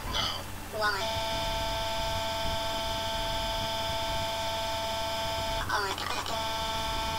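A man screams loudly and steadily in a shrill, synthetic voice.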